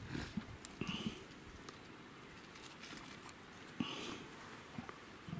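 A leopard's claws scrape and thump against tree bark as it climbs.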